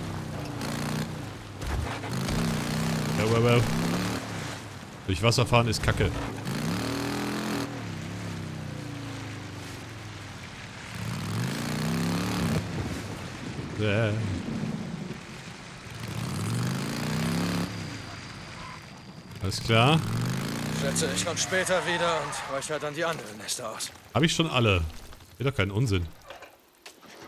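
A motorcycle engine revs up and down as it rides.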